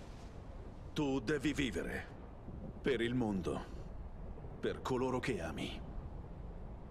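A young man speaks calmly and firmly.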